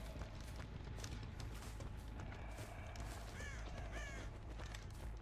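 Heavy footsteps crunch slowly through grass and leaves.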